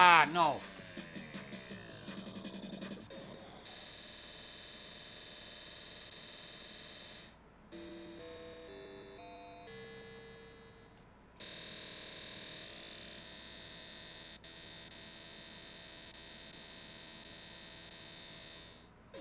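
Electronic pinball jingles and bleeps play loudly.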